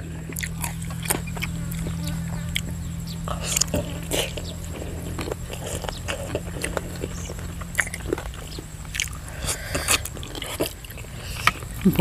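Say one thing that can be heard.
A man chews and smacks his lips noisily up close.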